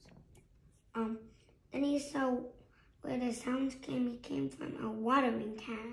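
A young boy reads aloud close by.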